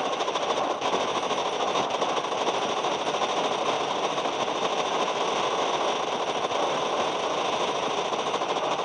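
Heavy machine guns fire in rapid, steady bursts.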